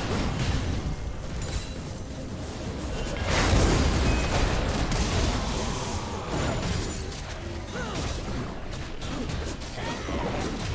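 Game characters' attacks clash with sharp hits.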